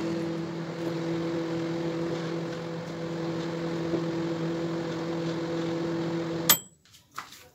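A microwave oven hums as it runs.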